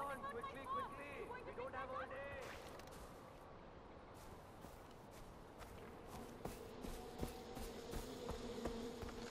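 Footsteps rustle through grass at a steady walking pace.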